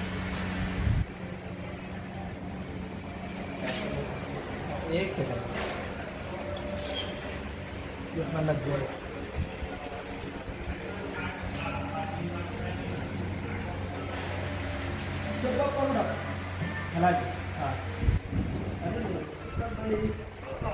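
Metal tools clink against a motorcycle's parts.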